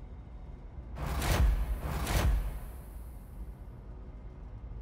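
A loud whooshing rush swells and fades.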